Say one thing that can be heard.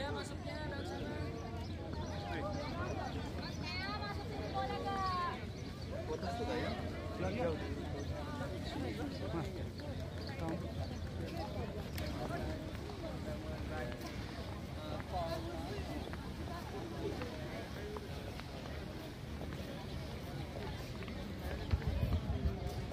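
A crowd of people chatter in the distance outdoors.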